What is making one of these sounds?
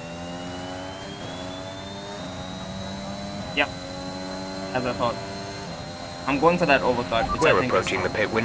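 A racing car engine roars at high revs, its pitch shifting with each gear change.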